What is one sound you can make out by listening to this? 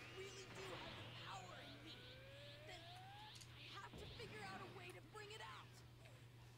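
A charging energy attack hums and crackles.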